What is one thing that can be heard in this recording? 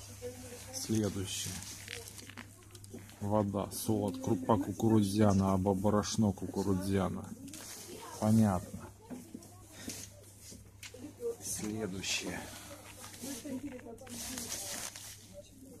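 A plastic bottle crinkles and rustles as it is handled.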